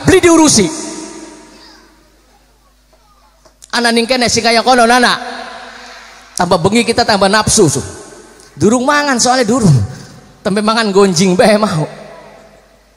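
A man speaks or chants loudly and with feeling into a microphone, heard through loudspeakers with a reverberant echo.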